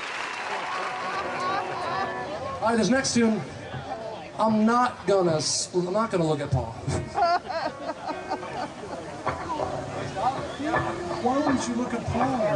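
A band plays rock music on guitars and drums.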